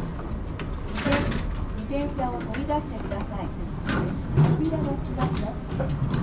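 A bicycle rattles as it is pushed into a metal rack.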